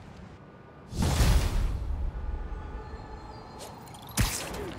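A rush of wind roars past.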